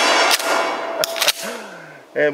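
A shotgun's pump action clacks.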